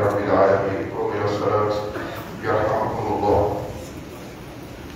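A man calls out in a loud, drawn-out voice, heard from a short distance.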